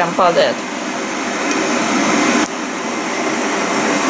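A kettle switch clicks off.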